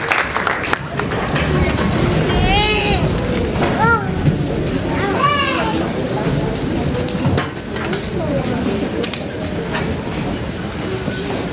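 A crowd of people cheers and chatters.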